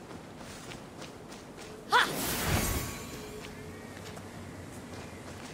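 Footsteps crunch softly on dry ground.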